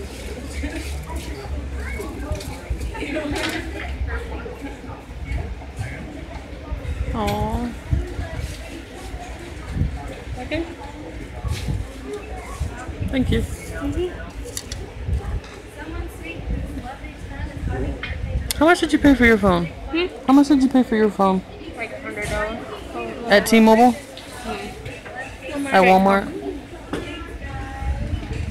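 Several people chat in a room with a murmur of voices.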